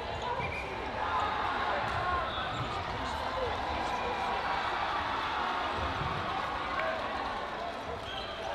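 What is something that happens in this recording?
A crowd of players and spectators chatters and calls out in a large echoing hall.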